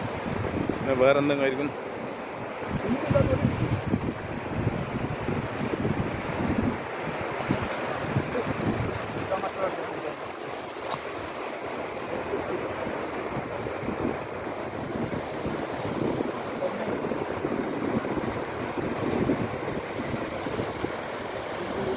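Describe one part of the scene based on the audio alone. Small waves wash up onto a beach.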